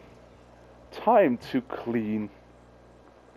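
A man speaks nearby in reply.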